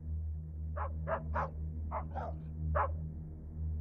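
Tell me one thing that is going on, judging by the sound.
Dogs bark outdoors.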